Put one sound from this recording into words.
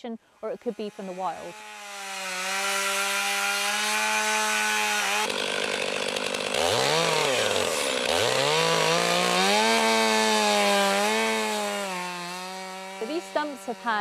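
A chainsaw roars and revs while cutting wood.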